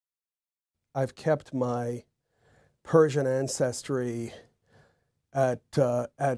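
A middle-aged man speaks calmly and thoughtfully into a clip-on microphone.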